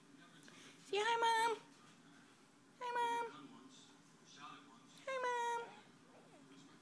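A baby squeals and coos loudly close by.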